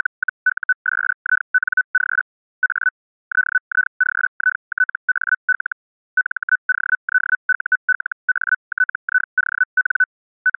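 A morse code keyer beeps out fast dots and dashes in a steady high tone.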